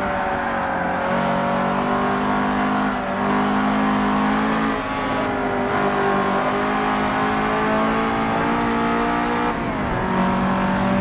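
A racing car engine revs up and down as gears shift.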